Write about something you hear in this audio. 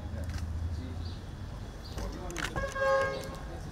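Shoes tread on paving as men walk up.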